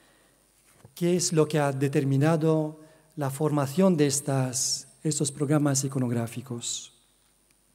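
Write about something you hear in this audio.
A man speaks calmly into a microphone, reading out.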